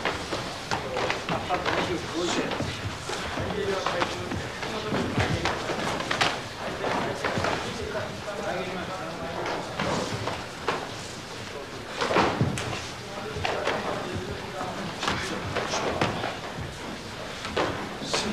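Fists and feet thud against bodies in quick sparring blows.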